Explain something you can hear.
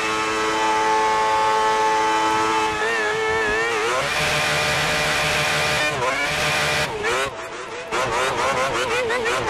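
A racing car engine screams at high revs, dropping in pitch with each gear change.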